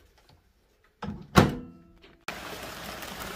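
A window latch clicks and the window swings open.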